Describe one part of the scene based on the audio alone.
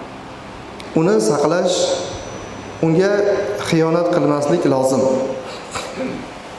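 A man chants in a melodic voice through a microphone, with echo in a large hall.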